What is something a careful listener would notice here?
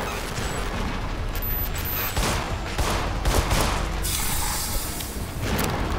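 Gunshots ring out in quick succession.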